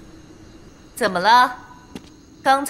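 A young woman speaks mockingly.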